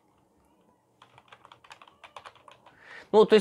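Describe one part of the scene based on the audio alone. Keys clatter on a computer keyboard.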